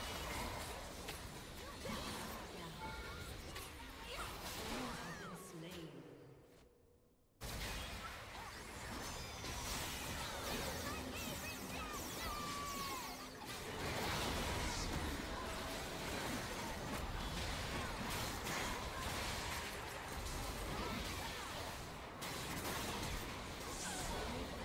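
Game spell effects whoosh and crackle in a busy battle.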